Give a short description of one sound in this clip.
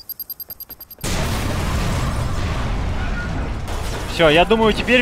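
An explosion booms loudly and rumbles.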